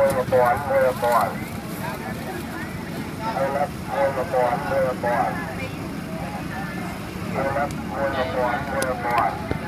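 Dry corn husks rustle and crackle as a hand handles them.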